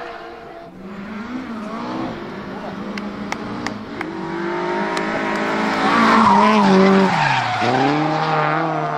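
A rally car engine snarls and revs up and down as the car slides through a bend.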